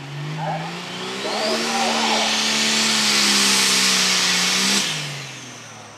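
A turbo whistles shrilly, rising in pitch while the engine revs.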